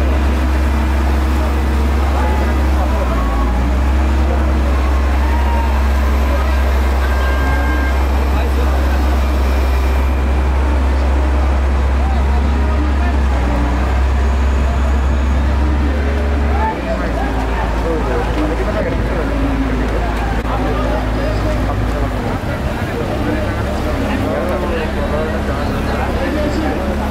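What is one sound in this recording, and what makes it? A heavy engine hums steadily nearby.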